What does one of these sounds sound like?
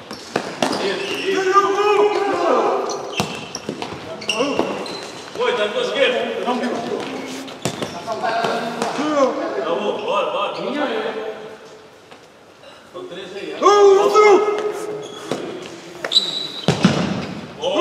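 A ball is kicked with sharp thumps in an echoing hall.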